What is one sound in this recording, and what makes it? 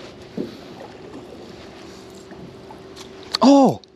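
Water drips and splashes as a magnet is lifted out.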